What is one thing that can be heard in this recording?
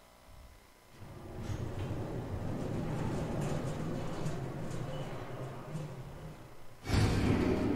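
A lift rumbles steadily as it travels down a shaft.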